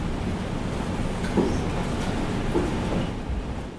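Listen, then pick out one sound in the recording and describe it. Laptop keys click as someone types.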